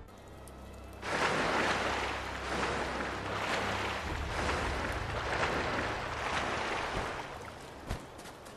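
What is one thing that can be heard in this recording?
Water splashes rhythmically as someone swims.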